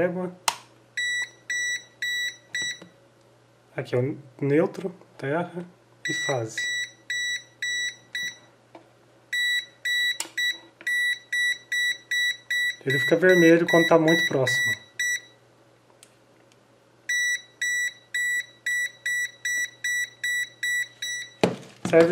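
A multimeter beeps rapidly in short, even pulses.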